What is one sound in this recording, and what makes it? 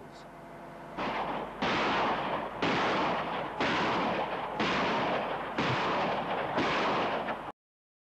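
Heavy blasts rumble across open ground, one about every second.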